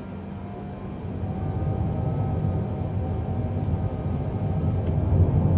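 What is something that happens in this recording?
Wheels rumble louder and louder as an airliner speeds along a runway.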